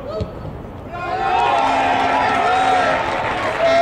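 A crowd cheers loudly in an open stadium.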